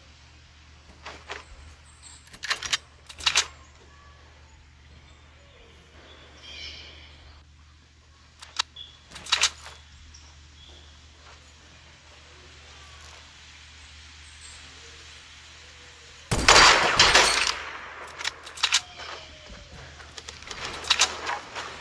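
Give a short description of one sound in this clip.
Sniper rifle shots crack sharply with a ringing echo.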